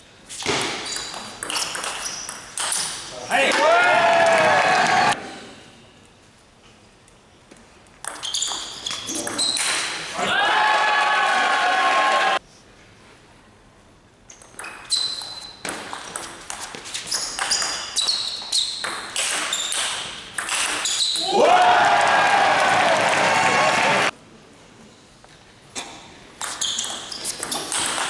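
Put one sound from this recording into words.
A table tennis ball clicks sharply back and forth on paddles and table.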